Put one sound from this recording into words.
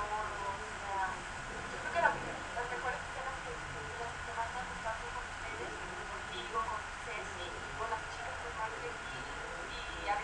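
A second young woman speaks and laughs softly.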